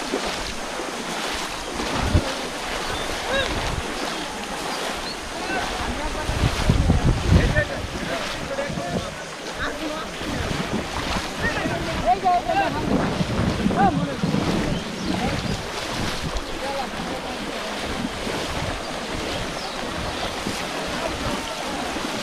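People splash and wade through shallow muddy water.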